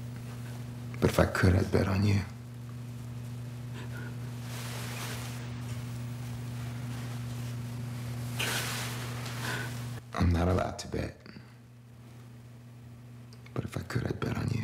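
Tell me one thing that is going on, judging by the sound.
A man speaks quietly and closely.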